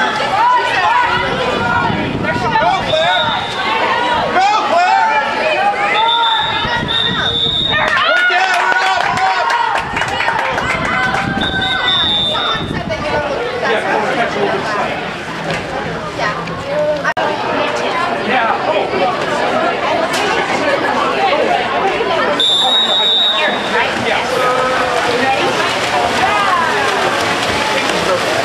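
A crowd of spectators shouts and cheers nearby outdoors.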